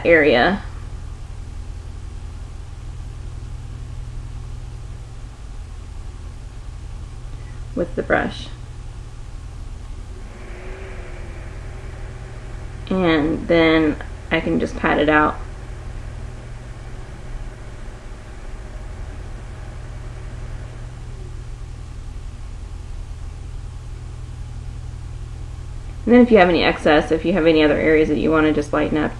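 A young woman talks calmly and close to a microphone, with pauses.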